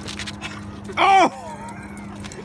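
A dog whines excitedly close by.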